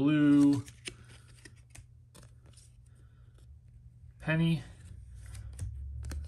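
Stiff trading cards slide and click softly between fingers, close by.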